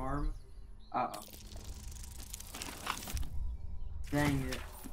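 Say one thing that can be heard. A die rattles and tumbles as it rolls.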